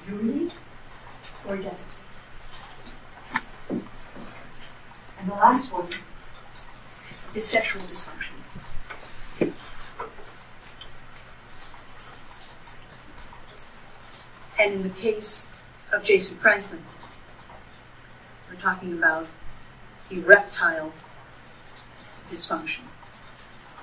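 A woman speaks calmly, with pauses between her words.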